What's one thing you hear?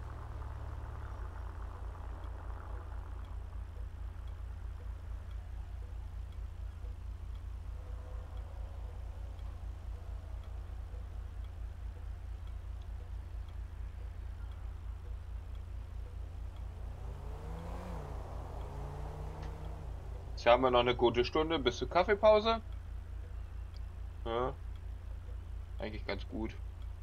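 A van engine idles with a low steady hum.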